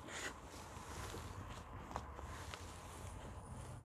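Small knocks and rustles sound softly nearby.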